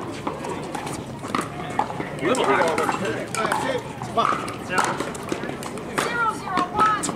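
Paddles pop sharply against a plastic ball, outdoors.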